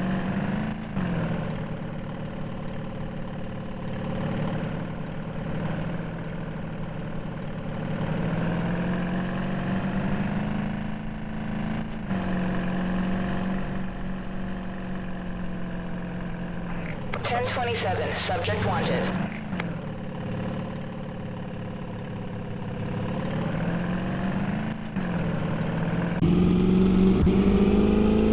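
A car engine hums steadily, rising and falling in pitch as the car speeds up and slows down.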